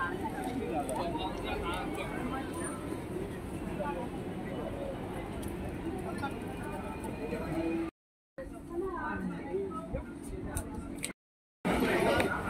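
A busy crowd chatters and murmurs all around outdoors.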